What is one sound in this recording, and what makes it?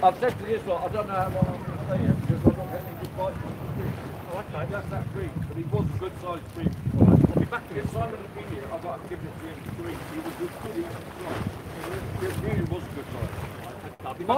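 Water laps gently against a harbour wall.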